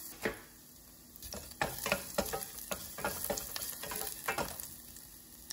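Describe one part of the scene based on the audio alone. A wooden spatula scrapes and taps against a metal pot.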